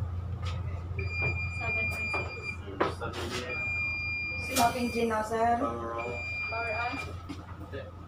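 A console alarm beeps in repeated long tones.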